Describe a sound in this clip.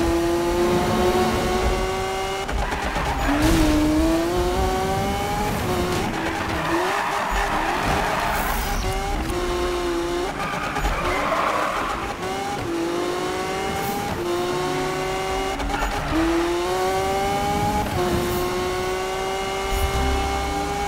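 A high-revving car engine roars, climbing in pitch and dropping with each gear change.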